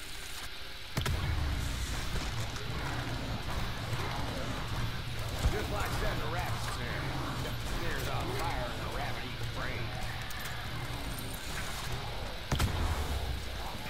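An energy weapon fires with a loud humming blast.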